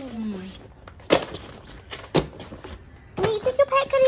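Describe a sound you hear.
Books thud onto a hard floor.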